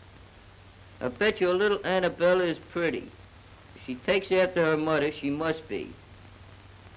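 A young man reads aloud slowly, close by.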